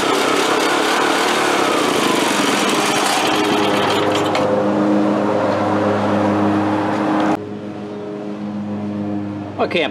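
A small engine runs with a loud, steady putter.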